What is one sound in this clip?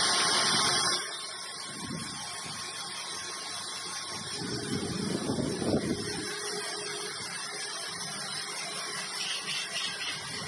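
A vibrating sieve machine rattles grain steadily.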